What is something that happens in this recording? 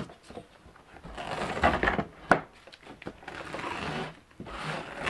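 A metal tool scrapes and clicks against a hard frame.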